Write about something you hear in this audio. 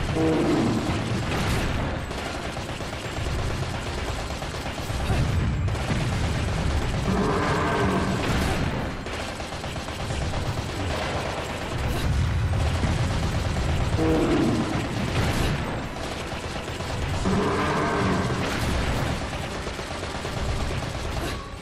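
Fiery blasts explode again and again.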